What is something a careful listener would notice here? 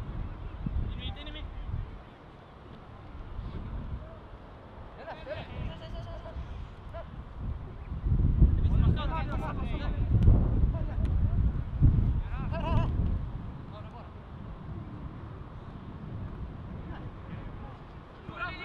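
Young players shout to each other in the distance.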